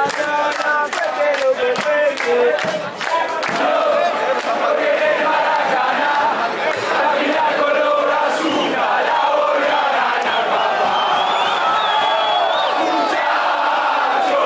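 A large crowd chants and sings loudly outdoors.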